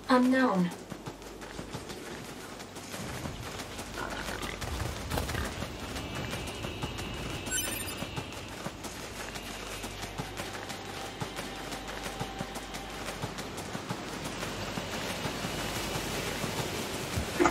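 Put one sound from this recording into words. Quick footsteps run over soft ground.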